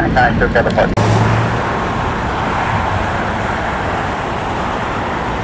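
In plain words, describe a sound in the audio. A jet airliner taxis past with its engines humming.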